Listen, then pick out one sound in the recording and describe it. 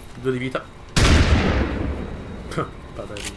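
A rifle fires a single loud blast that rings out and fades.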